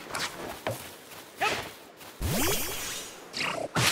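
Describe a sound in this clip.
A thrown ball bursts open with a bright, sparkling pop.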